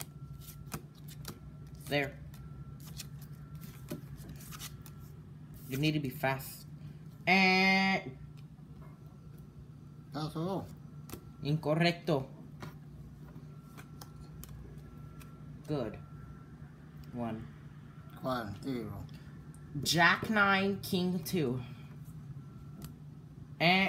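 Playing cards slap and slide on a table.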